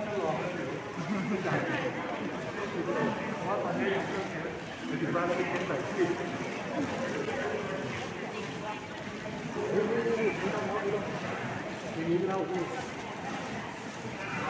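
Plastic-wrapped packages rustle as they are handed over.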